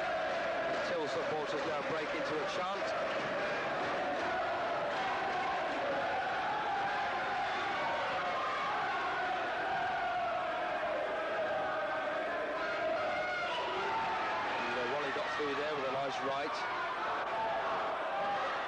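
Punches thud against a boxer's body.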